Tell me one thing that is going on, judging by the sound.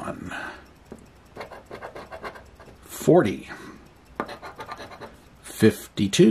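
A coin scratches across a paper ticket in short, quick strokes.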